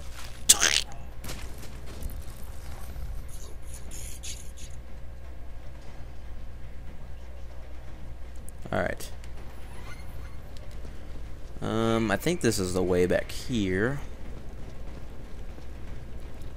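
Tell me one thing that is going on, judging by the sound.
Footsteps thud steadily on pavement.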